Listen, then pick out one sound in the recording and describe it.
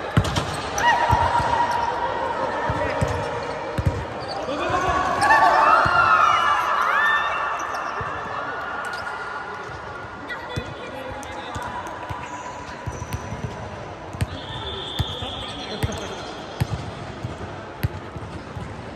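A volleyball thumps off players' arms, echoing in a large hall.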